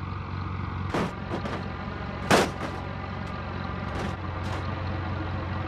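Metal thuds and clanks as a truck tumbles onto its side.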